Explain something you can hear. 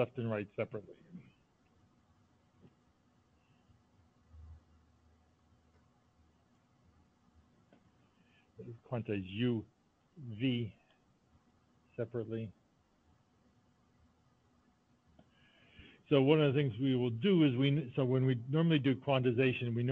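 A man explains calmly, heard through an online call.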